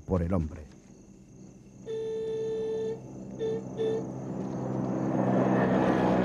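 A vehicle engine rumbles as it approaches, growing louder.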